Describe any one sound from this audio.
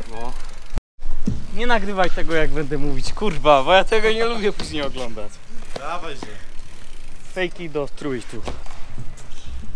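A second young man talks excitedly close by.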